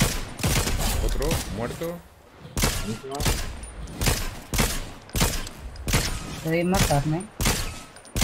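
A man talks excitedly into a microphone.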